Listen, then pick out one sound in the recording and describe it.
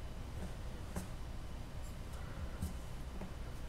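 A small tool knocks lightly on a hard surface.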